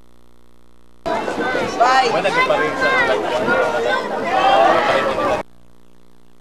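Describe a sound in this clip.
A group of young adults talk and laugh together close by, outdoors.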